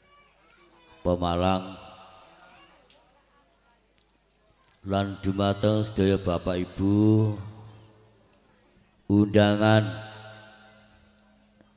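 A middle-aged man chants loudly in long drawn-out phrases through a microphone, with pauses between phrases.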